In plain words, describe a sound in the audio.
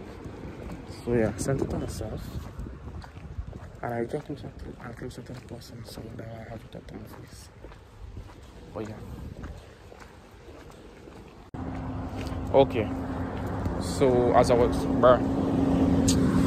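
A young man talks calmly close to the microphone.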